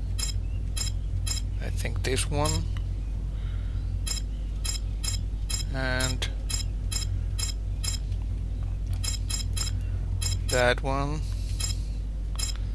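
Short electronic blips sound again and again as menu choices change.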